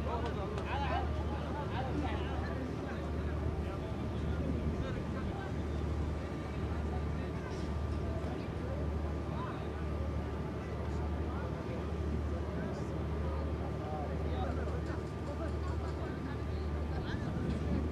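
A crowd of men and women chatter in the open air.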